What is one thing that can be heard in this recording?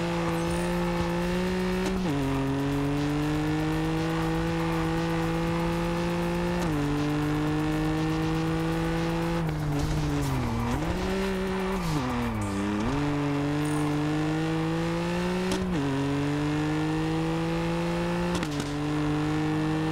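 A car engine roars loudly, revving up through the gears and dropping sharply at each shift.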